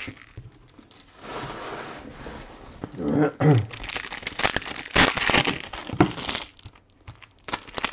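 Trading cards slap and shuffle onto a stack.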